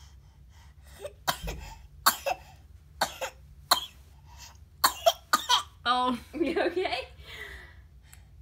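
A baby squeals and laughs close by.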